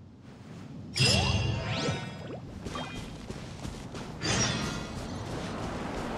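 Bright magical chimes and sparkles ring out.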